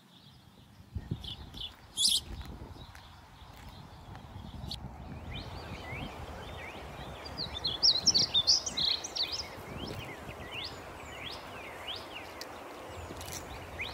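Footsteps tread along a path outdoors.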